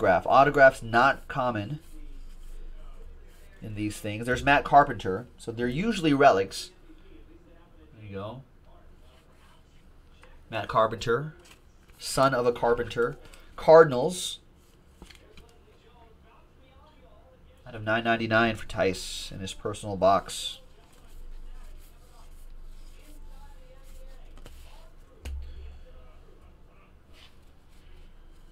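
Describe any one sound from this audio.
Trading cards rustle and slide as they are shuffled.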